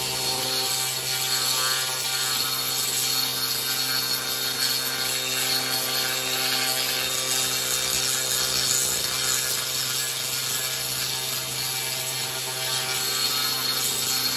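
A spinning wire brush rasps and scrapes against wood.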